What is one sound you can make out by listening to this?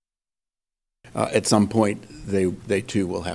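A middle-aged man speaks calmly and with animation into a microphone.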